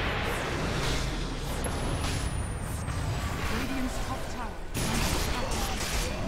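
Game spell effects crackle and blast in a fast battle.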